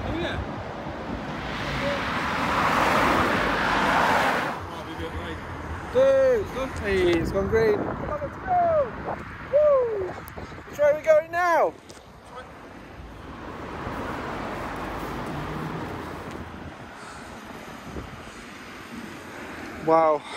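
Traffic rumbles past outdoors.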